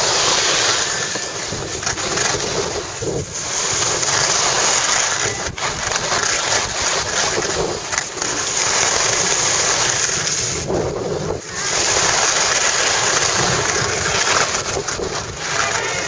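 Wind rushes loudly past a moving microphone.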